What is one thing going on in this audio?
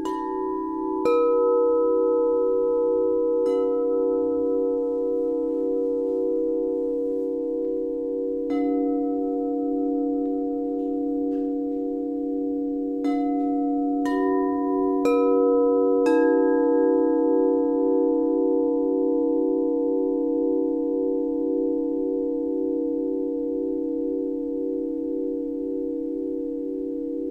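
A steady, pulsing hum of bowls being rubbed sustains throughout.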